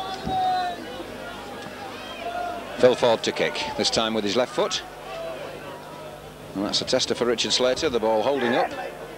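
A crowd murmurs in an open stadium.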